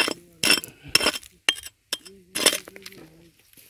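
A hoe strikes and scrapes stony ground.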